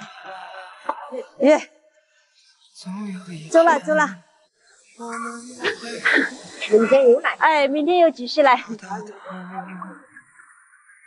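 A young woman talks cheerfully close by.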